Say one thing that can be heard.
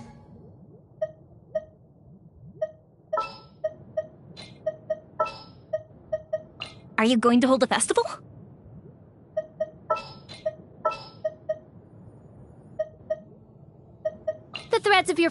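Soft menu clicks and chimes tick repeatedly.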